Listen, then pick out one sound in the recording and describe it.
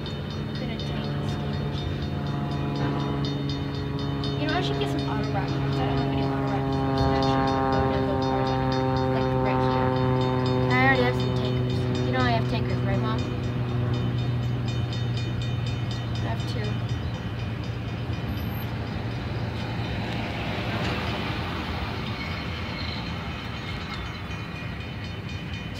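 A freight train rumbles and clatters steadily past nearby.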